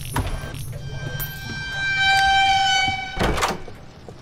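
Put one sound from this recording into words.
A monster lets out a loud, harsh pitched shriek.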